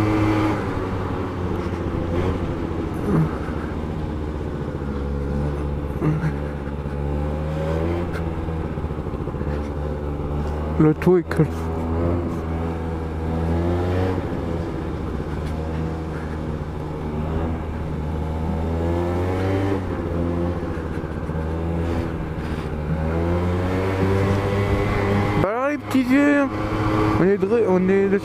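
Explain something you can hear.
A motorcycle engine hums steadily and its revs rise and fall.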